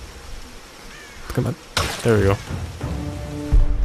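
A bowstring snaps as an arrow is shot.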